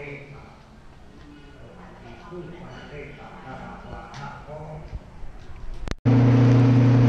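A man talks quietly nearby in an echoing space.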